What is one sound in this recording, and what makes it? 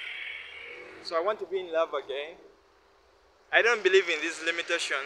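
A young man talks with animation close to the microphone, outdoors.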